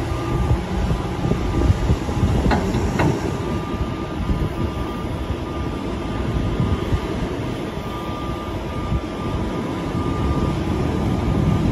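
A loader's diesel engine rumbles and works steadily close by.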